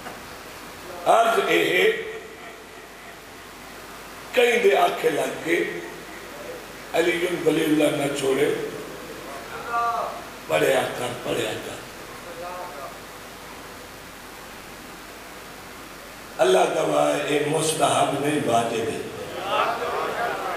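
A man recites loudly and with passion into a microphone, in bursts with pauses between.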